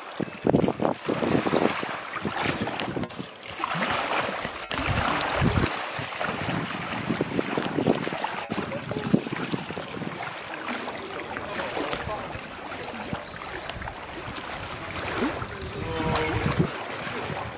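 Water splashes and sloshes as a hippo pushes a large ball around.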